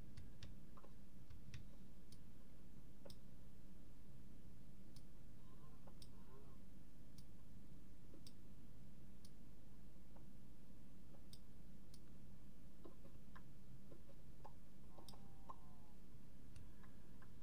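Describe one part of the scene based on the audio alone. A pickaxe chips at stone with faint, regular clicks.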